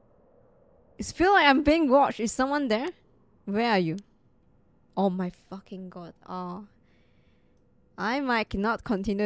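A young woman talks with animation through a microphone, close up.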